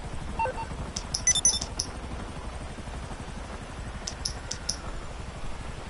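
A phone menu clicks and beeps in quick taps.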